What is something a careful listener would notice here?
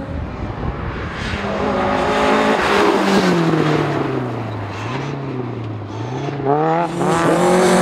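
A rally car approaches with its engine revving up and down through the gears.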